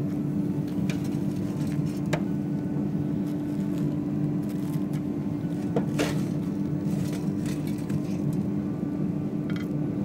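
Metal tongs click against an air fryer basket.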